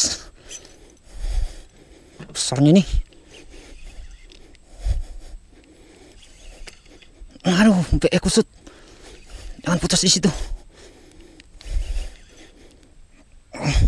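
A fishing reel whirs softly as its handle is cranked.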